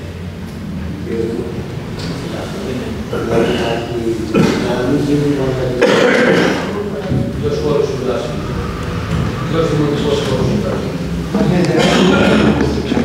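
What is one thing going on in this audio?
A man speaks with animation over a microphone in a large room.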